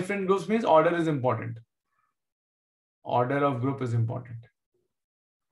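A man speaks calmly into a microphone, explaining in short phrases.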